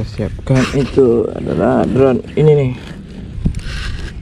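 A zip pull jingles against a buckle.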